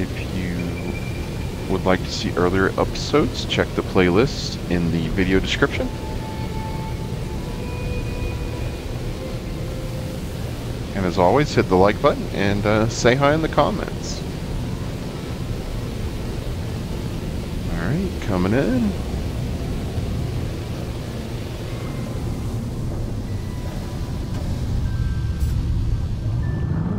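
A spaceship engine hums steadily in flight.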